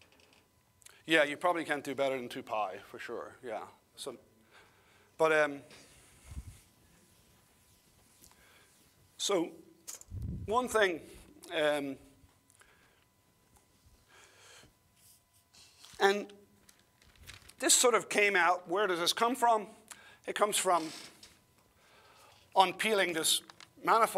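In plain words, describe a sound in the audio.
An older man lectures calmly through a microphone.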